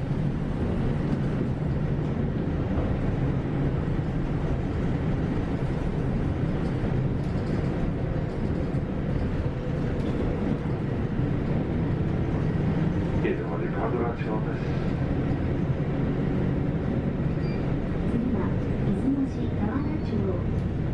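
A vehicle's engine and tyres rumble steadily while driving along a road.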